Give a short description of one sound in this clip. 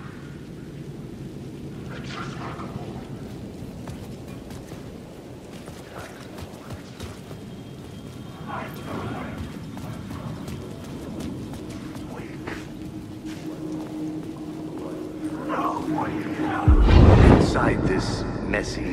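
Footsteps splash on a wet street.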